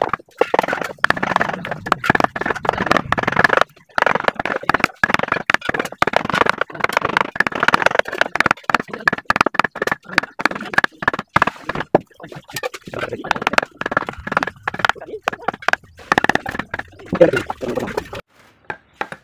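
A wooden mallet taps a chisel into wood in quick repeated knocks.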